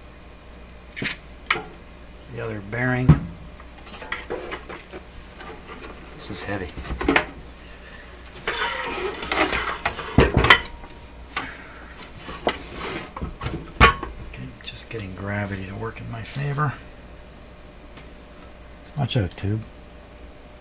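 A metal chassis knocks and clunks as it is handled.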